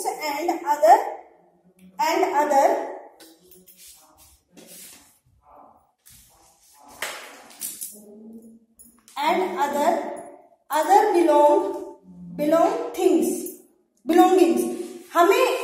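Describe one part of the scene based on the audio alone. A young woman reads out clearly, close by.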